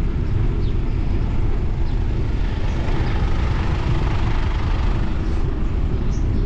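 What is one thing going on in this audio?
A pickup truck drives past close by and fades away.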